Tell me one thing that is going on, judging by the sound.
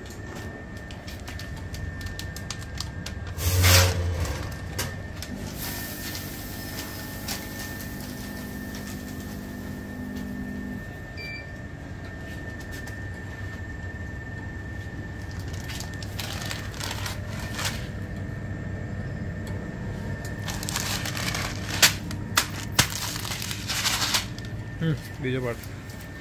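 A band sealing machine runs with a steady motor hum.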